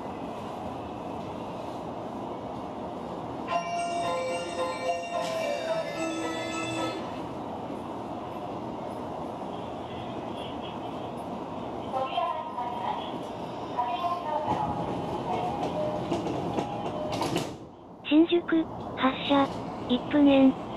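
A train's motor hums steadily while standing still.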